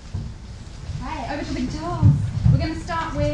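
A children's ensemble plays guitars and other instruments in a large hall.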